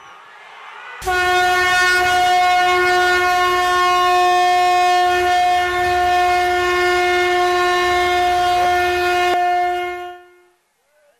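A conch shell is blown in a long, loud, steady blast.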